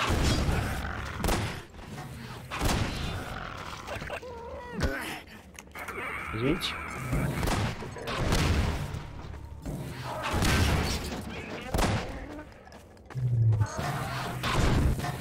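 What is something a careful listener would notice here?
Explosions and shots boom loudly again and again.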